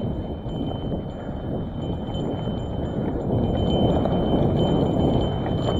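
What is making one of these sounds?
Wind rumbles loudly against the microphone, growing stronger as the bike picks up speed.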